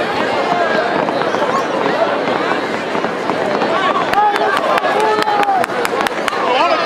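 A crowd in the stands cheers and chatters loudly outdoors.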